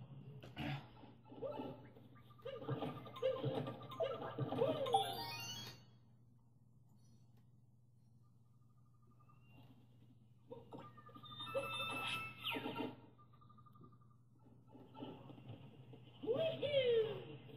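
Electronic game music and effects play from a television speaker.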